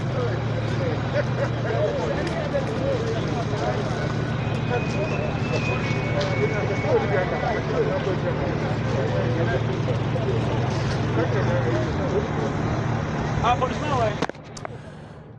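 A crowd of people talks and shouts excitedly outdoors.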